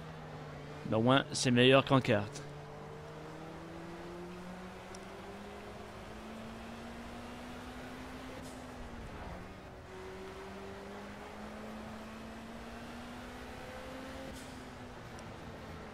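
A racing car engine hums steadily and shifts pitch as the car speeds up and slows.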